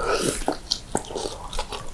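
A man blows out air through pursed lips.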